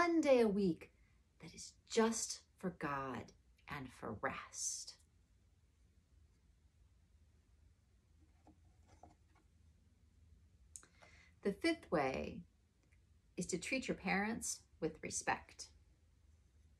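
A woman speaks calmly and closely.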